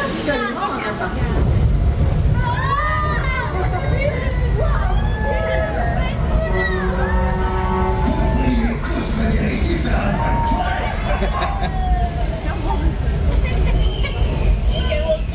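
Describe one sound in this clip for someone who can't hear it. Water sprays and hisses from a mist jet.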